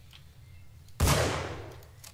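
A rifle fires a single loud shot that echoes and fades.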